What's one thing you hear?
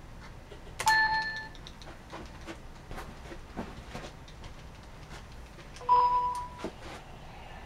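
An electronic chime sounds from a television.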